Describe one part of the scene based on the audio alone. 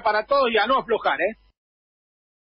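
A man speaks with animation over a radio broadcast.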